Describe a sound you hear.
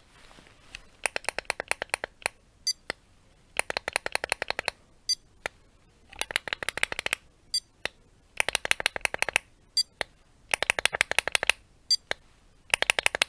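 Fingernails scratch rapidly on a plastic surface close by.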